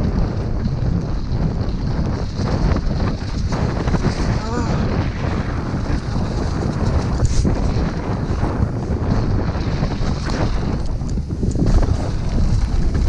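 Wind roars past a helmet-mounted microphone at speed.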